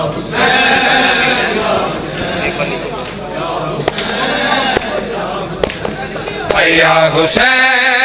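A group of men chant loudly together.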